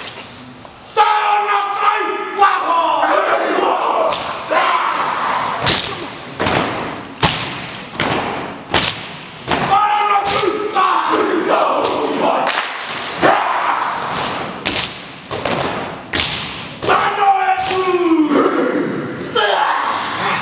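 A group of young men chant and shout together in a large echoing hall.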